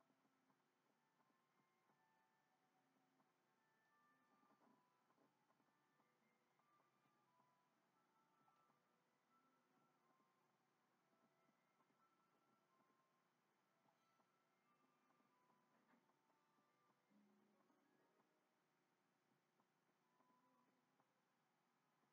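Light, tinkling game music plays quietly through a television speaker.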